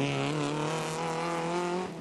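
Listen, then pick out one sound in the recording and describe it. Gravel sprays against a car's underside.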